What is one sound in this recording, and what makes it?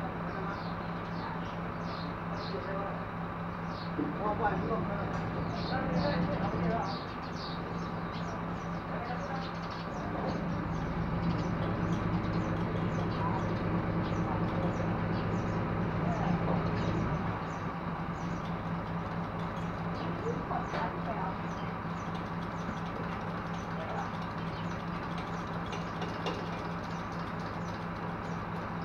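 A truck engine hums steadily nearby.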